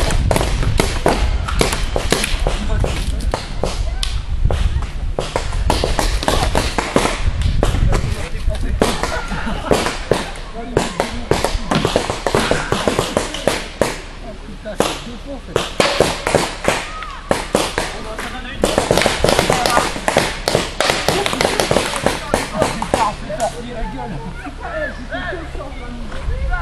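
Paintball markers fire rapid popping shots.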